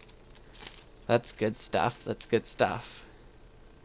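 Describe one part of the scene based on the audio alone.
Playing cards flick and tap against each other.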